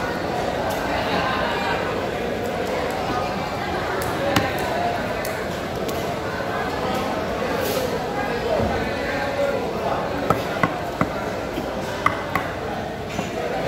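A knife chops through fish with sharp knocks.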